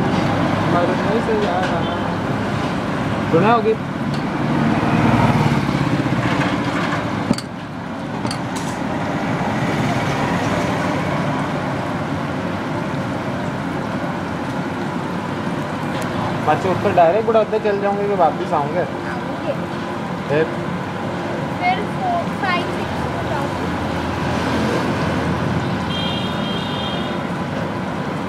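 Hot oil sizzles and bubbles steadily in a pan.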